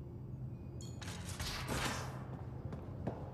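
A sliding door whooshes open.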